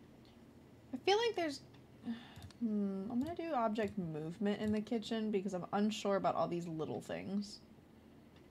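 A young woman talks animatedly and playfully, close to a microphone.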